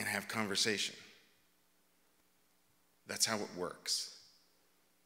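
A middle-aged man speaks with animation through a microphone.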